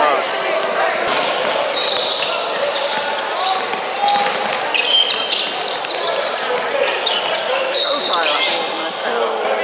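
Young players and spectators shout and call out in an echoing gym.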